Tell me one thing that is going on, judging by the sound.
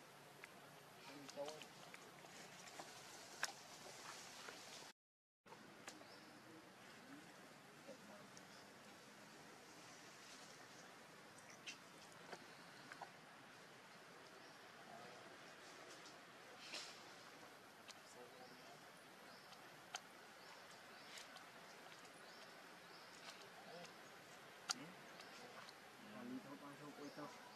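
A baby monkey suckles with soft wet smacking sounds.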